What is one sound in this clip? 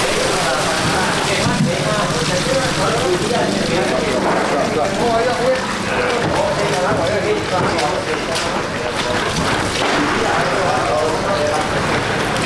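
Water pours from a barrel and splashes onto fish.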